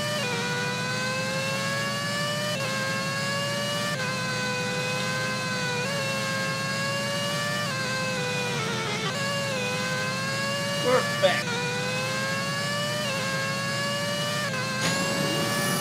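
A racing car engine whines steadily, its pitch climbing and dropping sharply with each gear change.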